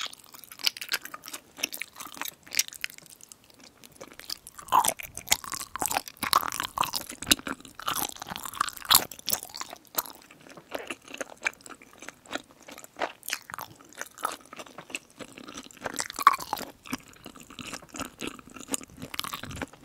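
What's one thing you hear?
A young woman slurps noodles up close.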